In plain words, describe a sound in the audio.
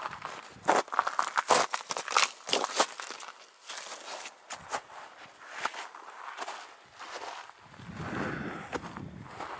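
Footsteps crunch on frosty grass and gravel.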